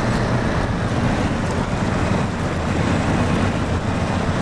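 Water splashes and rushes under the truck's wheels.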